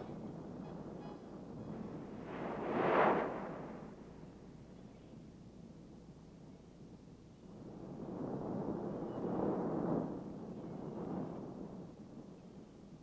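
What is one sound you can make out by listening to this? Waves crash against rocks and wash up the shore in slow surges.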